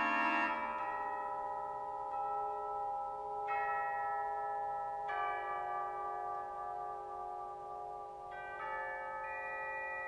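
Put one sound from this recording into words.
A pipe organ plays sustained, slowly changing chords.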